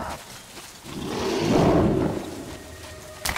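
A monster growls loudly up close.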